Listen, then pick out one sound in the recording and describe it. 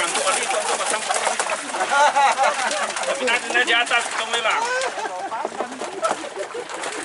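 A group of men and women talk over one another nearby.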